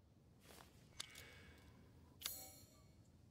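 A door lock clicks open.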